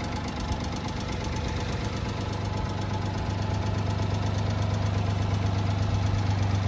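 A small truck engine idles nearby with a steady, fast chugging rumble.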